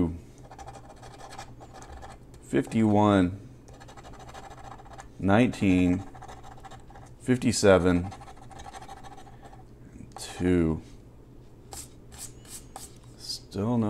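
A coin scratches and scrapes across a card.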